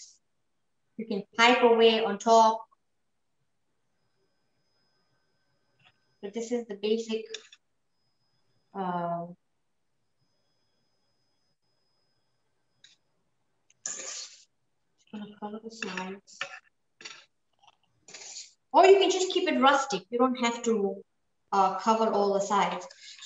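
A woman speaks calmly and clearly, close by, in short phrases with pauses.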